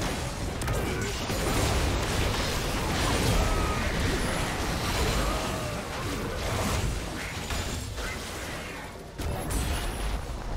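Video game spells and attacks crash and whoosh in a hectic battle.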